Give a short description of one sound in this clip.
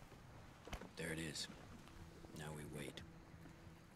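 A man speaks quietly and calmly.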